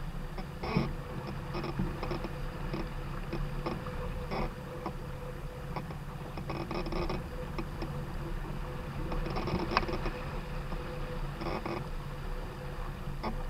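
Choppy water splashes against the hull of a small sailboat.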